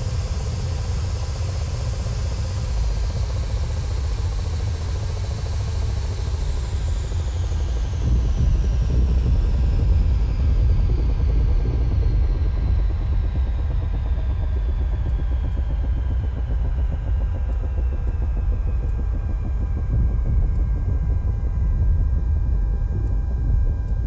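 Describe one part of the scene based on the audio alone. A helicopter's rotor thumps with a deep, steady rumble.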